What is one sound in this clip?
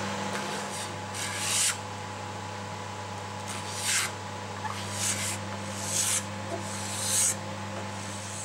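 A file scrapes in short strokes across metal frets.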